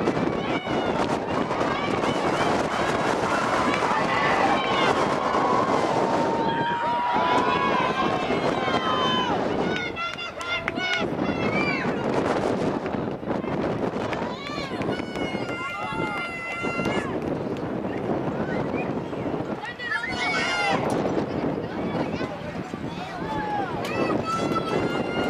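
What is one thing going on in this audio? Young women shout and call to one another across an open outdoor field.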